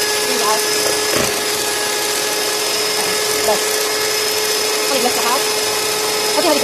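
An electric hand mixer whirs steadily as its beaters whip a thick mixture in a bowl.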